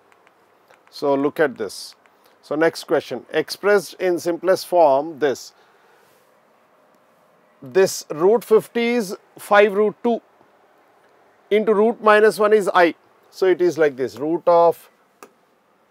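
A middle-aged man explains calmly into a close microphone, in short bursts with pauses.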